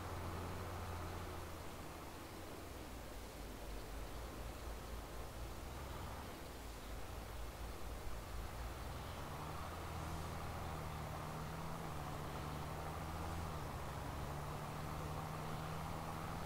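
A tractor engine rumbles steadily, its pitch shifting as it works.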